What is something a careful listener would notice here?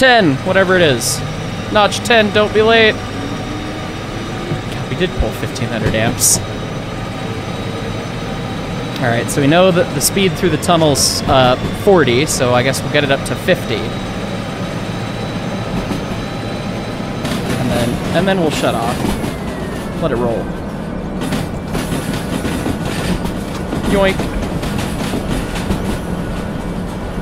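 Train wheels roll and clatter over the rails.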